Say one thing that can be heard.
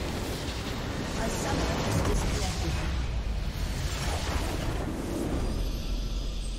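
A massive explosion roars and rumbles.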